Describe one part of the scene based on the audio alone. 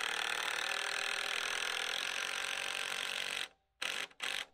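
A cordless drill whirs as it drives a screw into wood.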